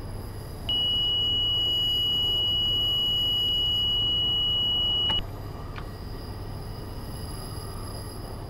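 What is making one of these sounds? Train wheels rumble steadily on the rails.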